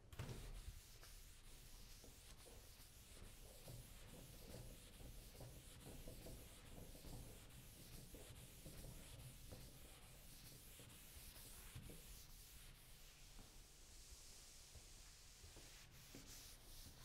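A cloth rubs across a chalkboard in quick, soft strokes.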